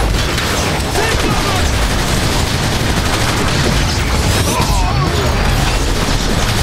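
Loud explosions boom.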